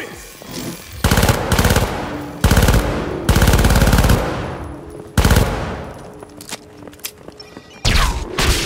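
Rapid automatic gunfire rattles in loud bursts, echoing through a large hall.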